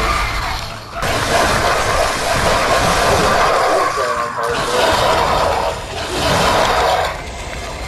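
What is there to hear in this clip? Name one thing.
Wild beasts snarl and growl.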